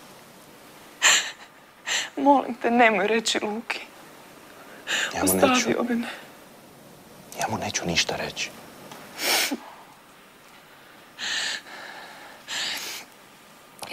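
A young woman speaks tearfully, her voice breaking.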